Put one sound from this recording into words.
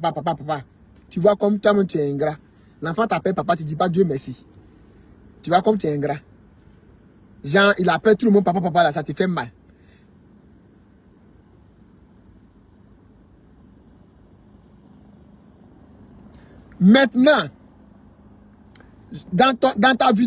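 A young man talks with animation close to a phone microphone, pausing between phrases.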